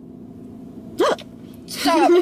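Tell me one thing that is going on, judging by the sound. A young woman speaks briefly with animation.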